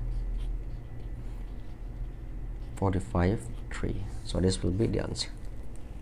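A pen scratches lightly on paper.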